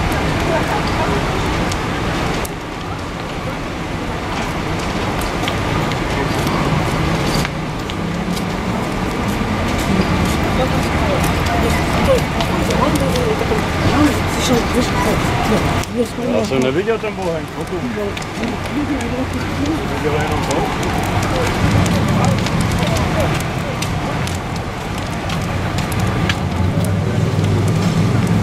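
A crowd of people talk in the background outdoors.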